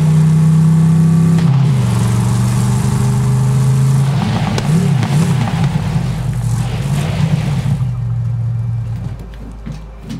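A vehicle engine roars loudly and changes pitch as it drives.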